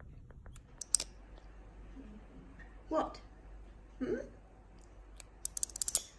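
A baby bat chirps and squeaks softly.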